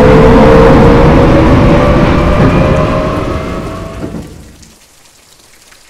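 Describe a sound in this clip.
A train rumbles past close by and fades into the distance.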